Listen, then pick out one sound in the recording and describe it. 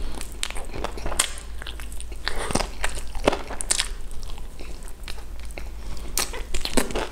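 A young man chews food wetly and crunchily close to a microphone.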